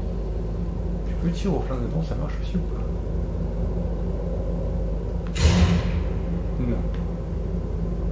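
Electricity hums and crackles steadily.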